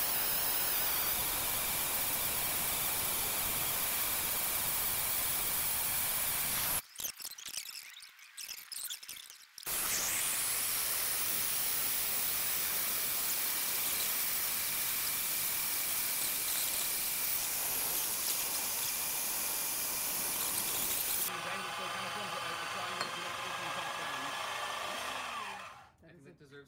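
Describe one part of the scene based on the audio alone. A band saw whines steadily as it cuts through a metal rod.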